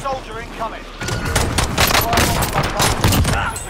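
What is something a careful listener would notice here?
Rapid gunshots fire close by.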